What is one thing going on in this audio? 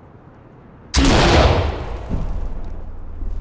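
A rifle fires a loud shot that echoes and fades.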